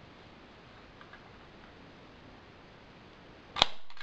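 A staple gun snaps sharply into upholstery.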